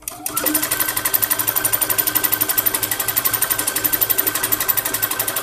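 A sewing machine stitches rapidly with a steady, fast clatter.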